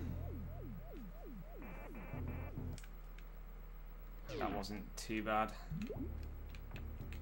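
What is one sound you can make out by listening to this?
Retro video game sound effects chirp, bleep and sweep in quick bursts.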